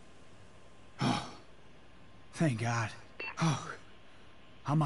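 A man speaks briefly and calmly.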